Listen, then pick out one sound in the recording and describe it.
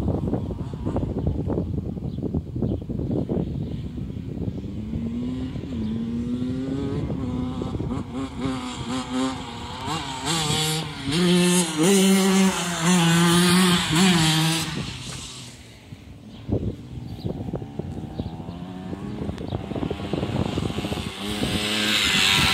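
A small dirt bike engine buzzes and revs as it rides past.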